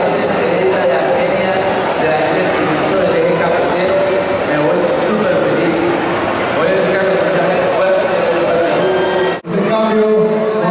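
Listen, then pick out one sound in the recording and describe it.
Music plays loudly through loudspeakers in a large echoing hall.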